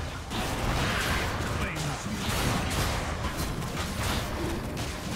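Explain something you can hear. Spell effects whoosh and crash in a busy video game battle.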